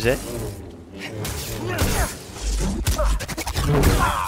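A lightsaber swooshes and clashes in a fight.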